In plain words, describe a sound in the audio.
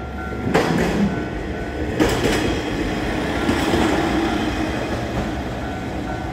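A diesel railcar rolls past.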